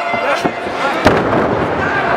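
A wrestler slams onto the ring mat with a loud thud.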